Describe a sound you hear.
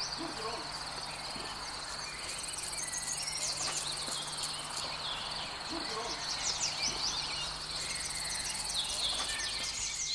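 Hands fiddle with a small plastic object close by.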